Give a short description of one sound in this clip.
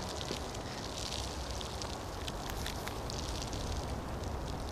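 Paper crinkles and rustles as hands unfold a note.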